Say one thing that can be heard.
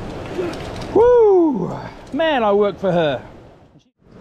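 A man whoops and shouts excitedly nearby.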